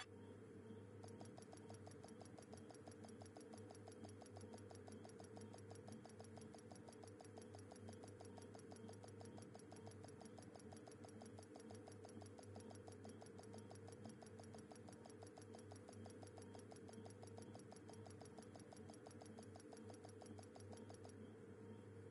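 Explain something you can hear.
A game's electronic ticking runs rapidly and steadily.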